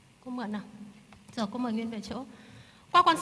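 A young girl answers in a soft voice.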